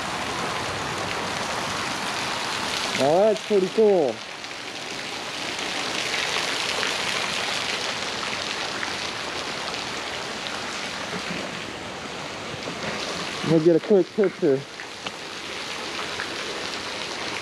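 Falling water splashes steadily into a shallow pool outdoors.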